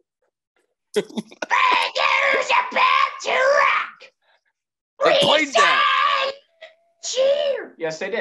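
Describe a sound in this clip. A second young man laughs and talks with animation over an online call.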